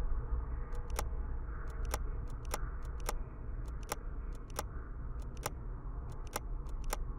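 Metal padlocks click and rattle against a chest.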